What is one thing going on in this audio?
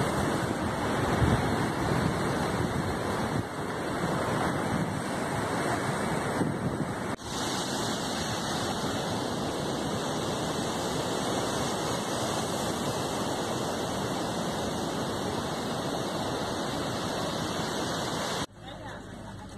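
A fast river rushes loudly over rocks.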